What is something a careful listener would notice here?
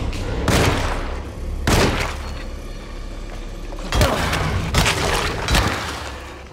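Loud revolver shots ring out one after another, each followed by a short echo.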